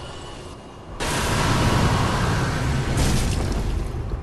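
A magic blast whooshes and booms.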